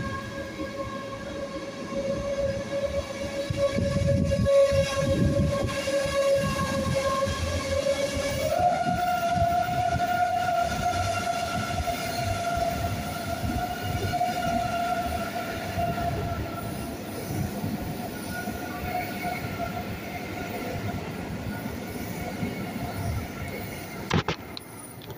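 An electric train motor whines steadily and steps up in pitch.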